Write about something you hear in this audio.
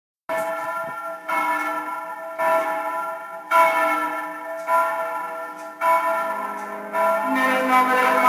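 A brass band plays outdoors in swelling phrases.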